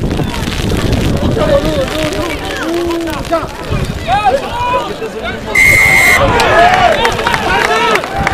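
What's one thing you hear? Men shout and call out to each other nearby, outdoors.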